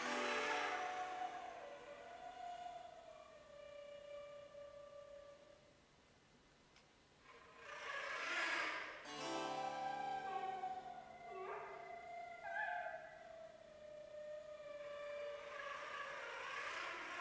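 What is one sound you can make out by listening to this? A harp is plucked.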